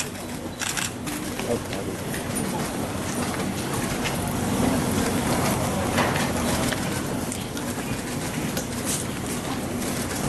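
Footsteps shuffle as a group of men walk.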